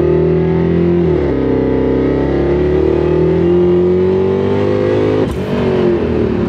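A car engine drops in pitch briefly as gears change.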